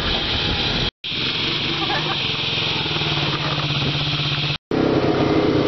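A quad bike engine idles nearby.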